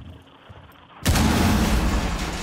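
Gunshots fire in a loud burst.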